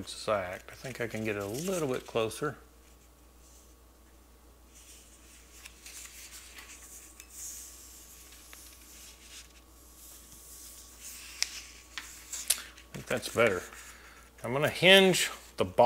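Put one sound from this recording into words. Paper rustles softly as hands fold and press a sheet.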